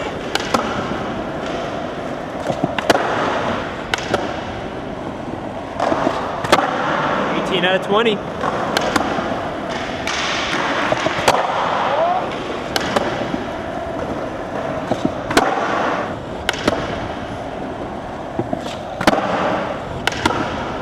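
A skateboard clacks and grinds along a ledge.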